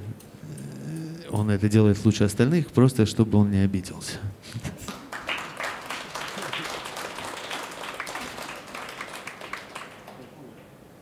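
A jazz band plays.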